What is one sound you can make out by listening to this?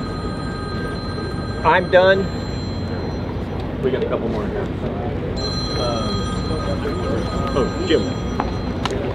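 A crowd of men murmurs in the background.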